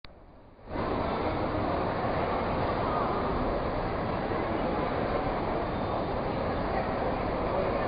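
A piano plays close by.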